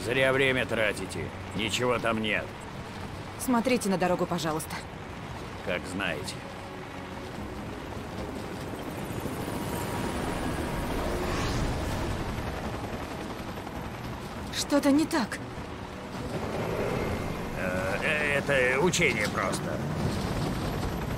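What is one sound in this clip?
A truck engine rumbles over rough ground.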